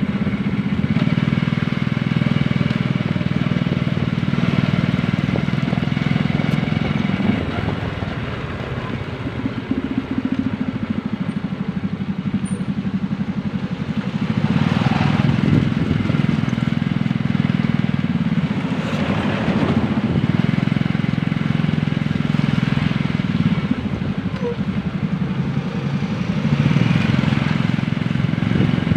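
Tyres swish over a wet road.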